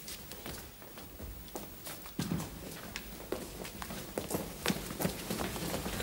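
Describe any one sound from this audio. Footsteps shuffle across a hard floor.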